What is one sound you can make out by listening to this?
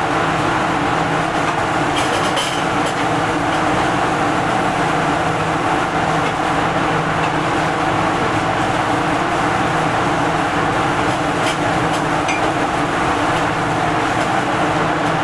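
A gas burner roars loudly and steadily.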